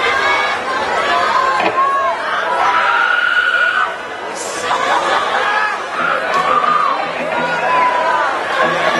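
A crowd of people chatters and calls out loudly in a large open space.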